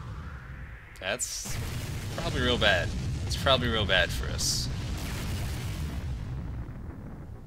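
A deep, rumbling blast booms and roars.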